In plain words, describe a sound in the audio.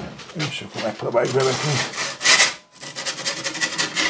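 A metal pizza peel scrapes across a stone oven floor.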